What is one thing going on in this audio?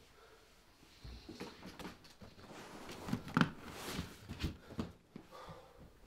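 Objects rattle and knock inside a case.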